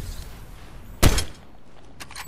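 A sniper rifle fires a sharp, loud shot.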